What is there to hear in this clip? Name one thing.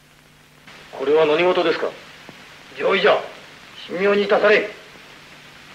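A man speaks loudly and forcefully in short bursts.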